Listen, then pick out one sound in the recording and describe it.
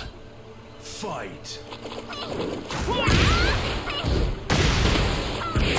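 A man talks excitedly into a headset microphone.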